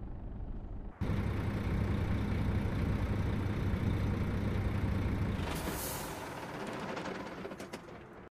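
A bus engine idles loudly close by.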